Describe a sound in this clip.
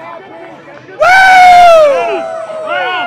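A young man lets out a loud, long yell close by.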